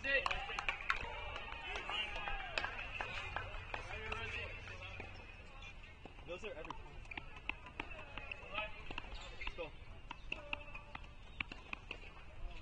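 Young men talk at a distance outdoors.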